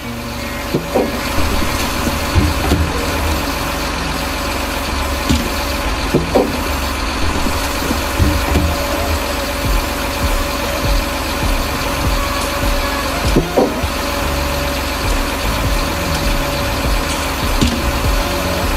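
Logs knock and thud against each other now and then.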